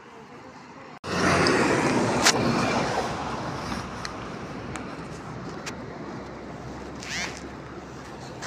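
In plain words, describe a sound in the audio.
Wind blows hard outdoors and buffets the microphone.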